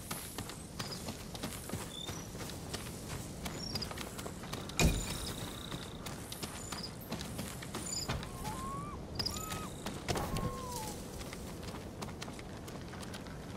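Footsteps patter on stone paving.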